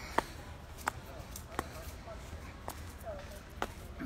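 Hard shoes tap on stone steps at a steady pace.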